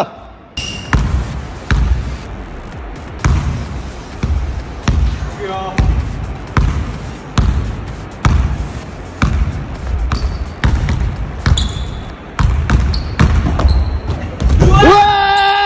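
A basketball bounces repeatedly on a wooden floor in a large echoing gym.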